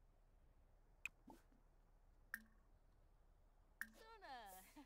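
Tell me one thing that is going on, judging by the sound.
Soft interface clicks sound as menu options pop open.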